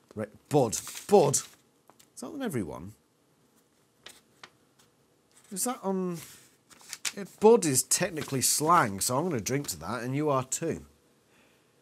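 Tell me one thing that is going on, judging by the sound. A man reads aloud calmly and close by.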